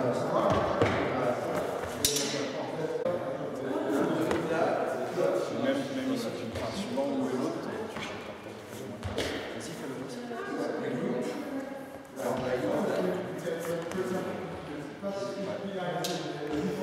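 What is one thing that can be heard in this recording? A man talks calmly nearby in a large echoing hall.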